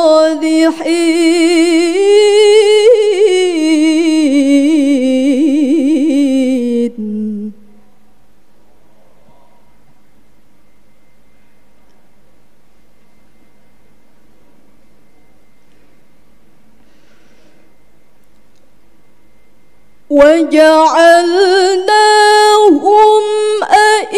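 A young woman chants in a long, wavering melodic voice close to a microphone.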